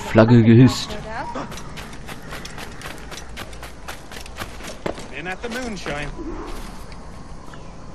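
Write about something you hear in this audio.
Footsteps run quickly on sand and hard ground.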